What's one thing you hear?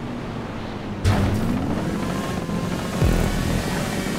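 A motorcycle lands hard with a loud thud.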